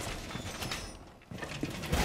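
Wood cracks and splinters as a figure smashes a wall panel.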